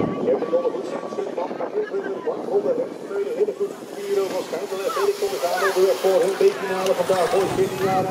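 Bicycle tyres roll and whir over a paved track.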